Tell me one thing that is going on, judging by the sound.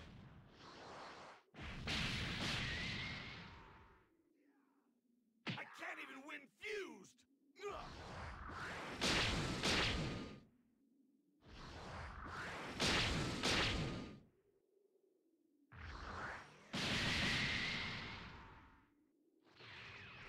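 Energy blasts roar and crackle in repeated loud bursts.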